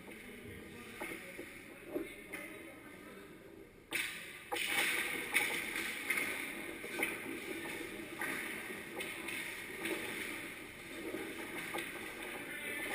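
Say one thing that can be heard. Hockey sticks clack against a puck and each other, echoing in a large hall.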